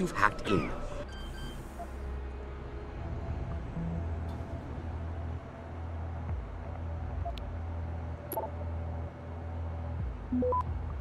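Electronic interface beeps chirp now and then.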